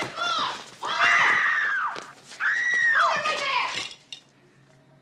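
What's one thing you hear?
A woman shouts urgently.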